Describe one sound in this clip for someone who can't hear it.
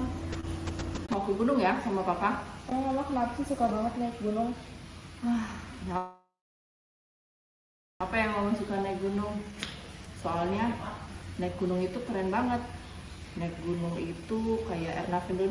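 A middle-aged woman talks tearfully, close by.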